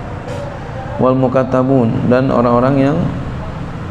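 A man speaks slowly and calmly into a microphone, in a room with some echo.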